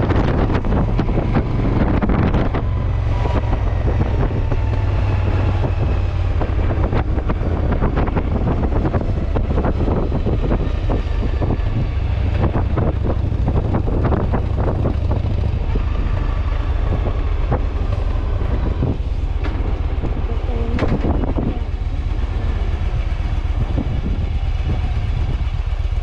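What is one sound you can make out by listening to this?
A motorcycle engine rumbles steadily while riding slowly.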